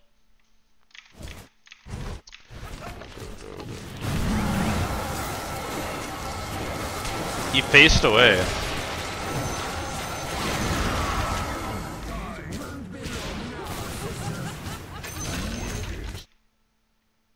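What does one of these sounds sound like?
Magic blasts and clashing combat effects ring out in a video game.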